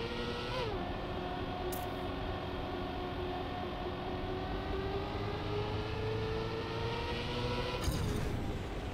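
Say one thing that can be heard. A race car engine hums steadily and slowly rises in pitch.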